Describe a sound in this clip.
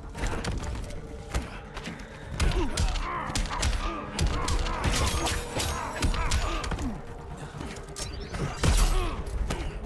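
Heavy punches and kicks thud in quick succession.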